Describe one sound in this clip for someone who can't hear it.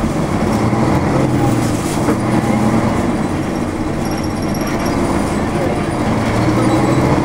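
A car engine hums steadily from inside a moving car.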